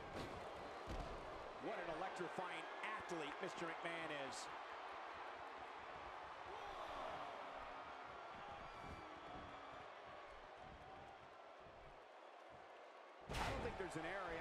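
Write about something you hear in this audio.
Heavy thuds land as wrestlers slam onto the ring mat.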